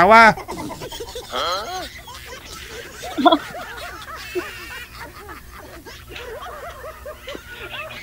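A woman laughs loudly over an online call.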